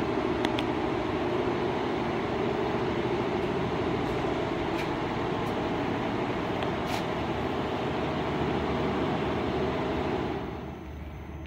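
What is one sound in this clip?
An embroidery machine hums and rattles loudly.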